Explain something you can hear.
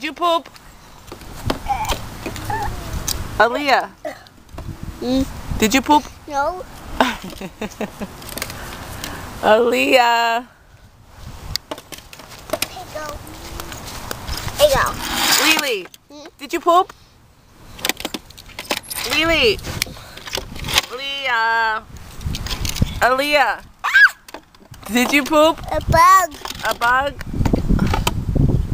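A young child talks and babbles in a high voice close by.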